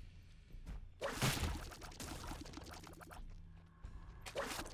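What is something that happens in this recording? Video game sound effects burst and splatter.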